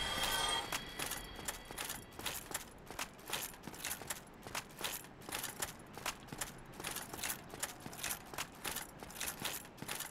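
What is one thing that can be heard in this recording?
Footsteps thud on stone steps.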